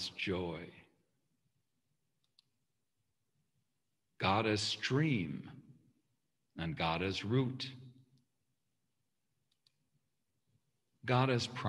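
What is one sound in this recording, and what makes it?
A man reads aloud calmly, heard through an online call.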